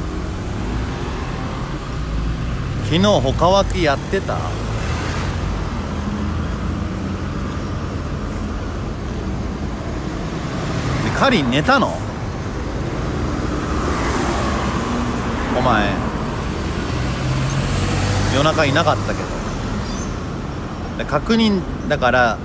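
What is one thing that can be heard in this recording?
Traffic rumbles steadily past on a nearby road.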